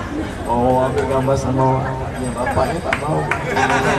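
A man sings into a microphone over a loudspeaker.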